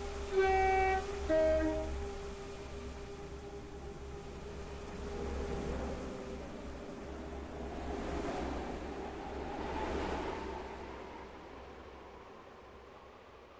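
A train rumbles and whirs as it pulls away, then fades into the distance.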